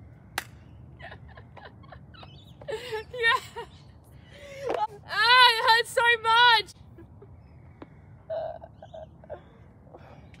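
A young woman laughs and talks excitedly close by.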